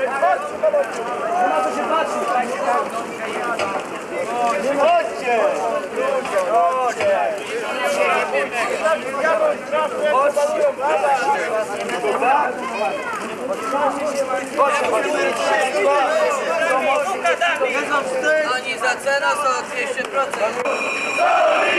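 A crowd of men talks and shouts outdoors.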